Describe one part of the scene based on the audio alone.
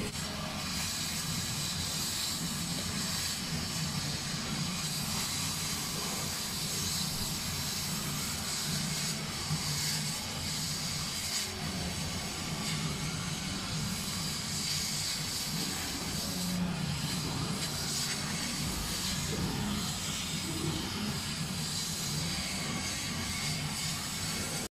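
An air pump hisses steadily.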